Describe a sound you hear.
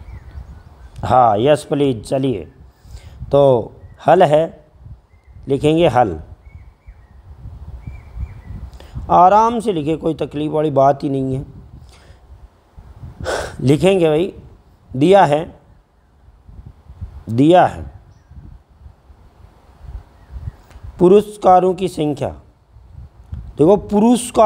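A middle-aged man speaks calmly into a close microphone, in bursts with pauses.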